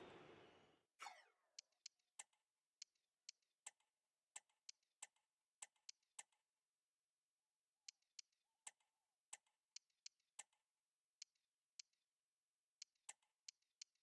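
Short menu clicks tick sharply, one after another.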